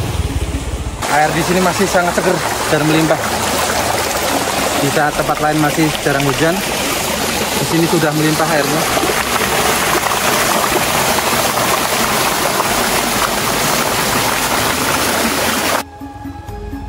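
Water rushes and splashes over rocks close by.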